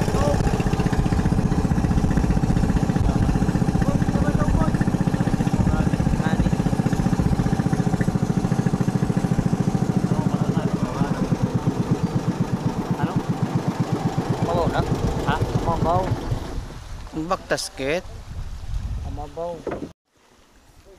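A boat motor chugs loudly and steadily, then cuts out.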